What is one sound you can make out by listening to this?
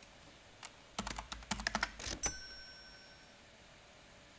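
A card payment terminal beeps and chimes.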